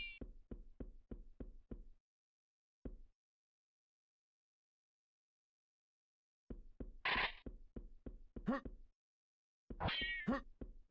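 Quick footsteps slap on hard stone.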